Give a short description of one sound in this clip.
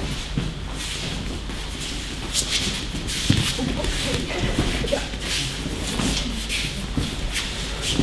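A body thumps onto a padded mat.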